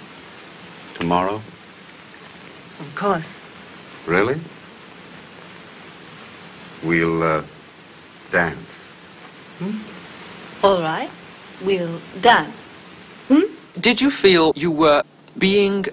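A woman speaks softly and playfully, close by.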